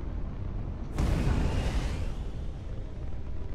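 A spaceship engine roars up in a sudden whooshing boost.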